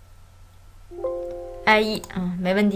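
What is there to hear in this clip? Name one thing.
A computer alert chime sounds once.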